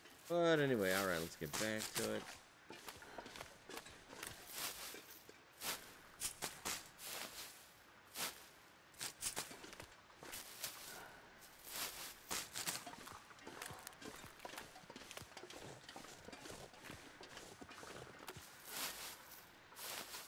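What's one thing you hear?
Dry reed stalks rustle and snap as they are pulled.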